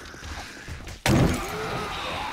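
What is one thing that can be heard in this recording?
A bottle smashes and bursts into flames with a loud whoosh.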